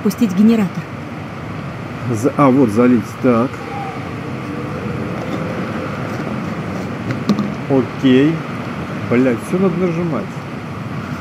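A man talks calmly and close to a microphone, in short bursts.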